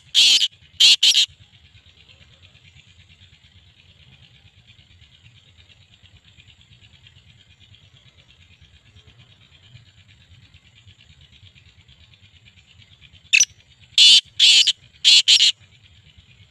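A caged bird calls out in loud, sharp bursts close by.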